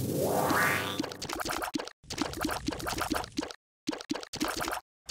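Quick soft popping shots fire in a rapid rhythm.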